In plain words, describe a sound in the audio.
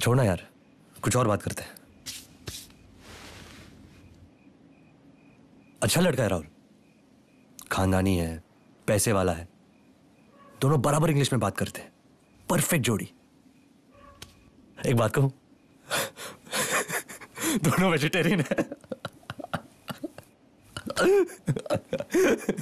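A young man talks nearby, in short bursts with pauses.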